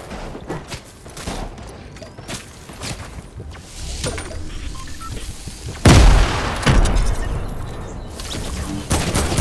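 Panels clatter and thud into place in quick bursts.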